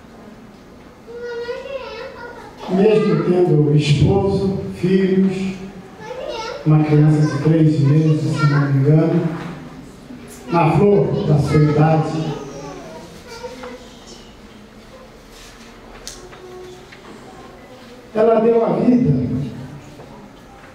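A middle-aged man speaks calmly into a microphone, heard through a loudspeaker in an echoing room.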